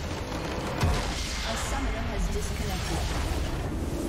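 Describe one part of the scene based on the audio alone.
A structure crumbles with a heavy crash.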